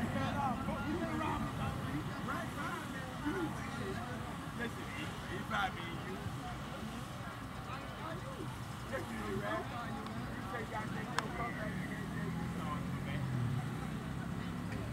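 Men talk and call out outdoors at a distance.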